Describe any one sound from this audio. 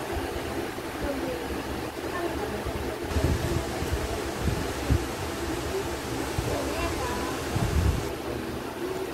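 A young girl talks close by, calmly.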